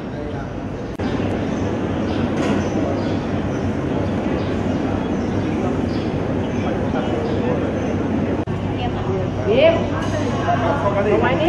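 A crowd of people murmurs and chatters in an echoing hall.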